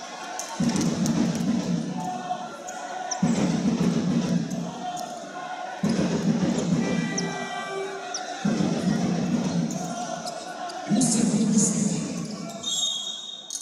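A crowd of spectators chants and cheers loudly in rhythmic bursts in a large echoing hall.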